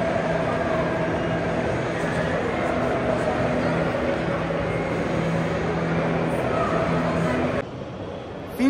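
A large stadium crowd chants and sings.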